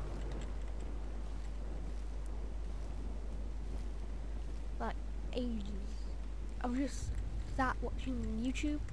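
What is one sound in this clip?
Leafy plants rustle as they are picked by hand.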